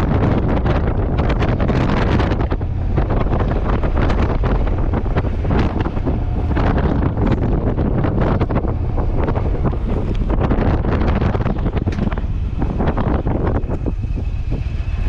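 Wind buffets loudly and roughly against the microphone outdoors.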